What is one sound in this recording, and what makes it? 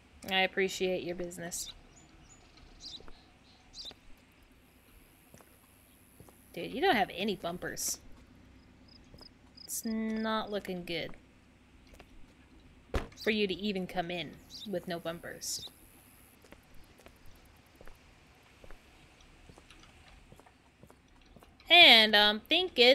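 A young woman talks with animation into a close microphone, in short bursts.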